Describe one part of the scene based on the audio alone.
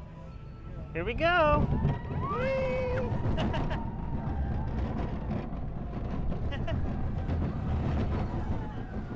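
Wind rumbles past on a moving ride.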